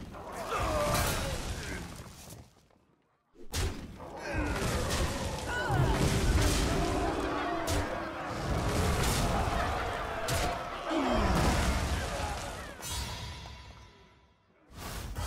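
Game sound effects clash and burst as cards attack.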